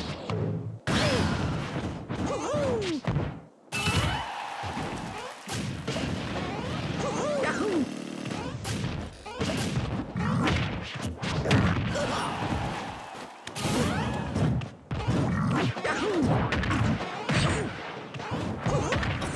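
Punches, kicks and blasts thud and crack in a fighting game.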